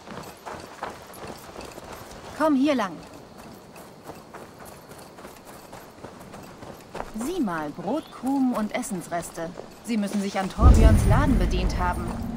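Footsteps patter on a dirt path.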